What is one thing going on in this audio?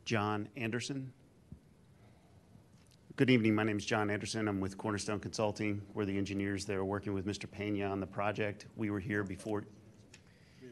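A middle-aged man speaks calmly into a microphone in a large room.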